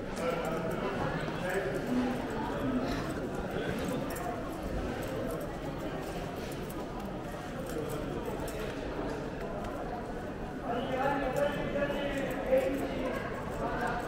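Footsteps shuffle on a hard stone floor.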